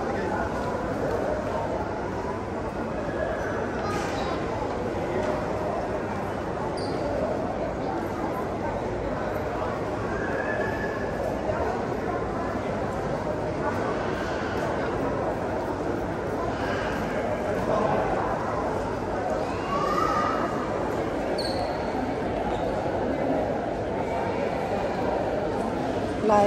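A crowd murmurs and chatters throughout, heard in a large echoing hall.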